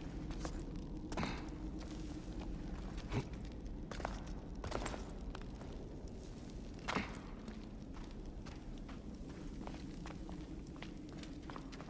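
Footsteps scrape and thud on stone.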